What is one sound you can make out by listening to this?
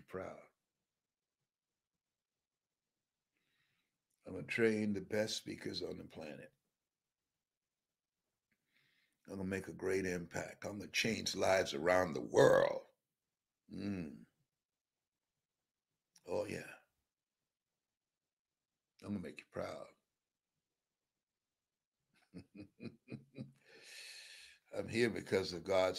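A man speaks emotionally and slowly into a close microphone, with long pauses.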